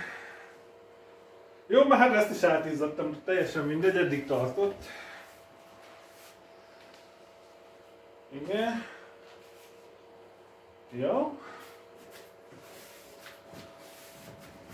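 A chair's cushion creaks and rustles under a man's hands.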